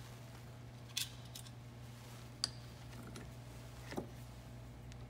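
A metal A/C line fitting clicks under a hand.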